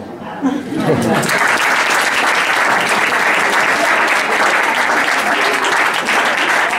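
A group of people applauds loudly.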